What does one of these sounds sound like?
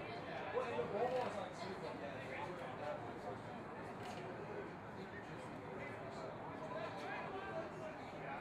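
Young men shout calls to each other outdoors on a playing field.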